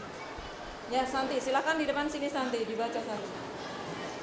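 A young woman speaks up clearly nearby.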